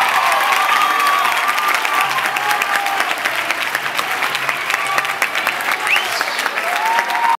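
A crowd cheers and whistles with excitement.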